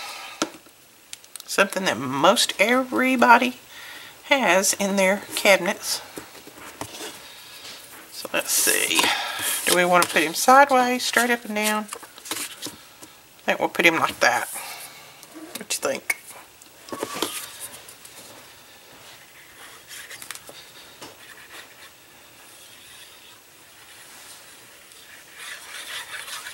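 Paper rustles and crinkles under hands close by.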